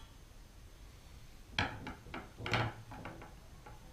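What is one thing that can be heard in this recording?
A metal tool knocks on a wooden table.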